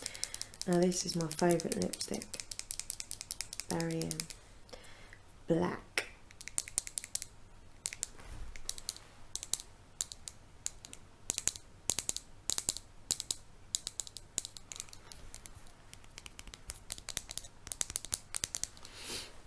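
Fingernails tap and click on a small plastic tube.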